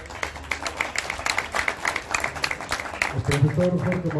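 Spectators clap and cheer.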